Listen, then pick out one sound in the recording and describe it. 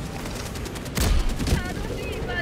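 A rifle fires a short burst.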